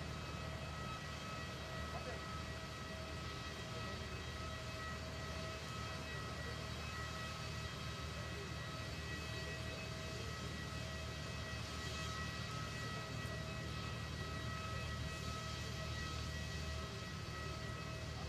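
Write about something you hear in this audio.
A jet aircraft's engine hums and whines steadily close by.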